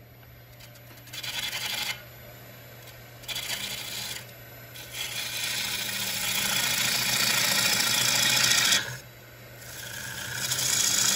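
A chisel scrapes and hisses against spinning wood in loud bursts.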